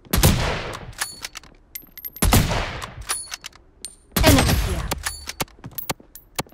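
A rifle bolt clicks and clacks metallically after each shot.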